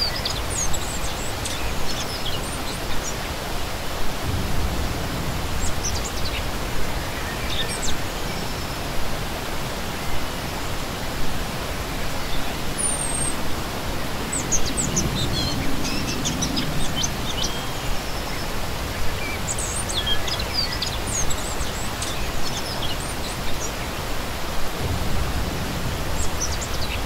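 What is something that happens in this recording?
A shallow stream rushes and splashes steadily over rocks outdoors.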